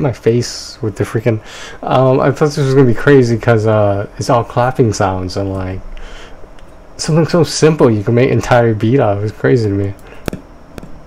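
A man speaks animatedly into a close microphone.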